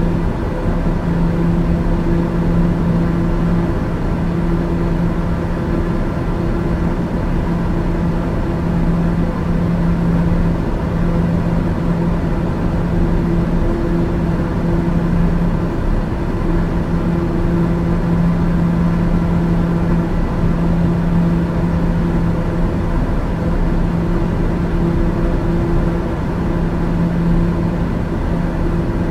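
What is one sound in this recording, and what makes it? Aircraft engines drone steadily inside a cockpit.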